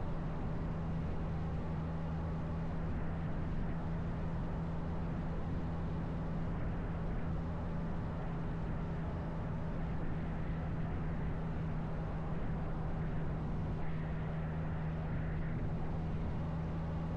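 Tyres roll on rough pavement.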